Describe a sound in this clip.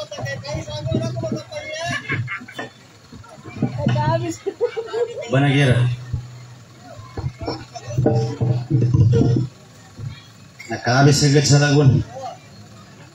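A young man speaks into a microphone with animation, close and amplified.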